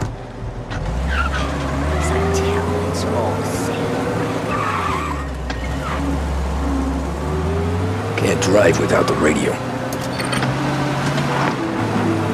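A car engine runs and revs as the car drives off.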